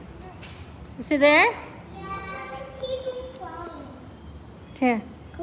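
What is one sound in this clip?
A young child shouts loudly nearby.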